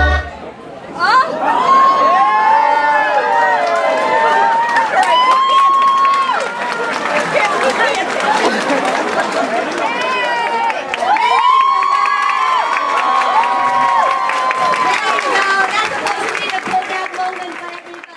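Young girls sing together in high, clear voices.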